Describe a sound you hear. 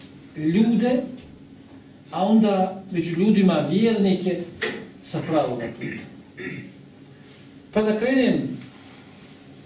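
A man speaks into a headset microphone with a slow, chanting voice.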